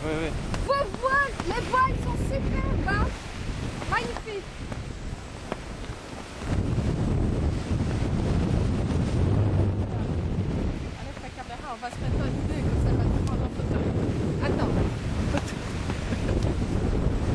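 Waves splash against a sailing boat's hull.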